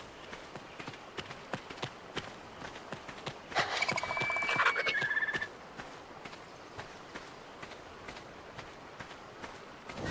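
Footsteps crunch steadily on sand.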